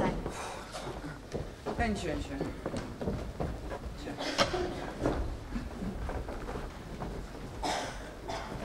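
A man speaks with animation, heard from a distance in a large hall.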